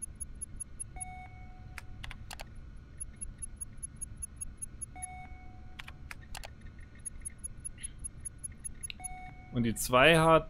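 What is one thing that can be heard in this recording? Short electronic beeps and clicks sound from a game menu.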